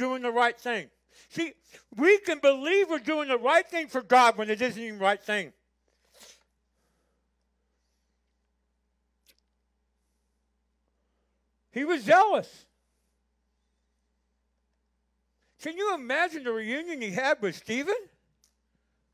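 An elderly man preaches with animation through a microphone, with long pauses.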